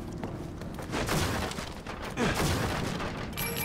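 Wooden crates smash and splinter apart.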